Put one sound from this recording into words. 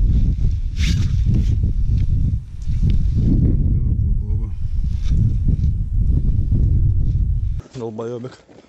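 Fabric rustles as hands rummage through clothing.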